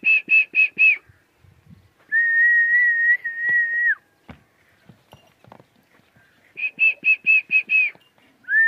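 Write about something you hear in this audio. A donkey brays loudly nearby, in short rasping bursts and a long drawn-out note.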